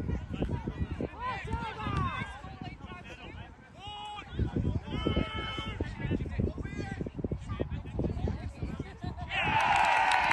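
Young men shout to one another across an open field.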